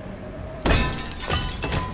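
A body lands with a heavy thud.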